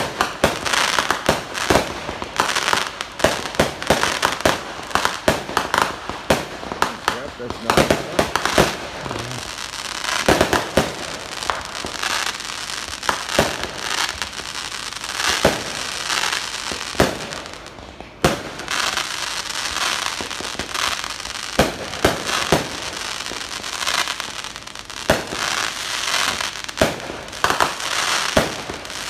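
Fireworks crackle and fizzle steadily.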